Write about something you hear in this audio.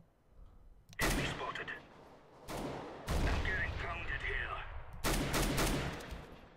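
A rifle fires loud single shots that boom and ring out.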